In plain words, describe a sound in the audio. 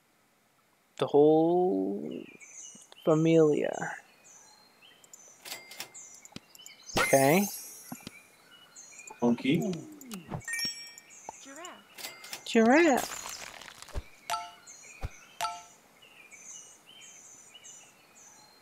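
Short game chimes and pops sound as pieces are picked and moved.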